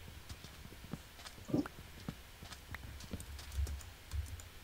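A video game plays short crunching block-breaking sound effects.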